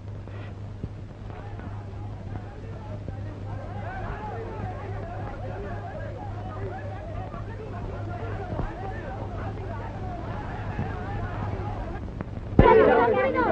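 A crowd murmurs outdoors in the distance.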